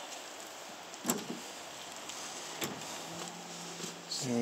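A pickup tailgate drops open with a clunk.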